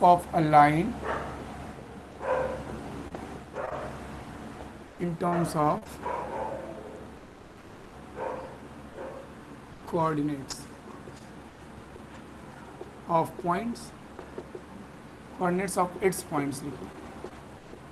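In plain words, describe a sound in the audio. A young man speaks calmly, explaining, close by.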